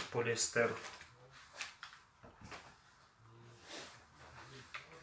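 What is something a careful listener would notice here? Hands brush and smooth fabric with a soft rustle.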